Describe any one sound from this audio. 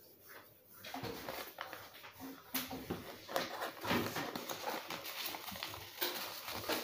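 Paper crinkles and rustles as it is folded around food.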